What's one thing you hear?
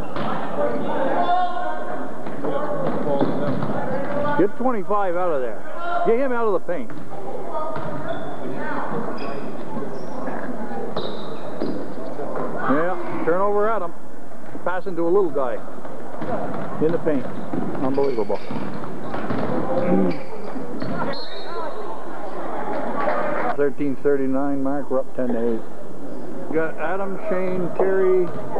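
Spectators talk and shout close by in a large echoing gym.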